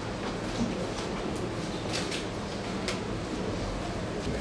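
Footsteps shuffle on a hard floor as a group walks past.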